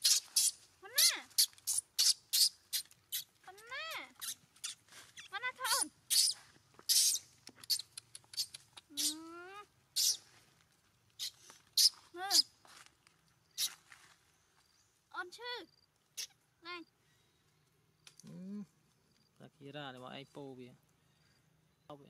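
A baby macaque squeals in high rising and falling cries.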